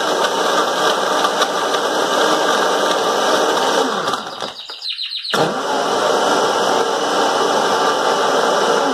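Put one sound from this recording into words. A blender whirs loudly, briefly stopping and starting again.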